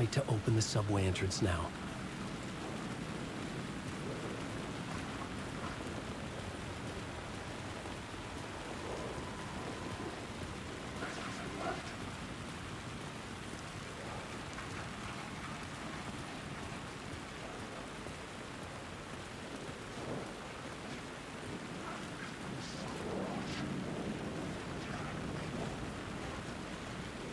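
Footsteps scuff slowly over wet, leaf-strewn pavement.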